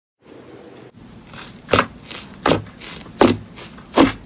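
Fingers poke fluffy slime.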